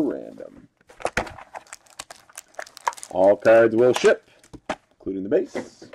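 Cardboard scrapes and taps as a box is handled and opened.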